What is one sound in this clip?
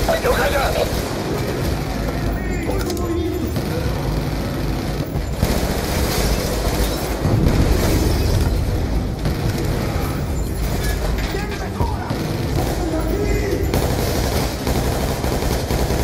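Automatic rifle fire rattles in rapid bursts.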